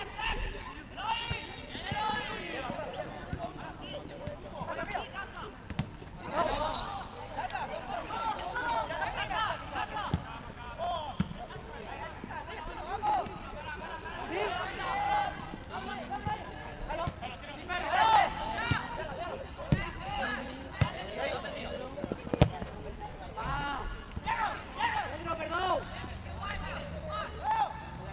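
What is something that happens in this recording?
Young men shout and call out to each other across an open outdoor pitch.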